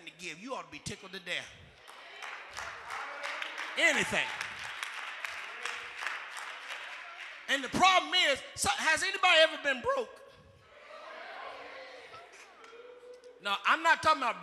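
A man preaches with animation into a microphone, heard through loudspeakers in a large echoing hall.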